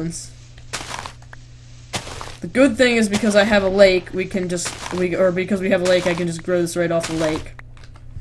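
Dirt crunches as it is dug away with a shovel.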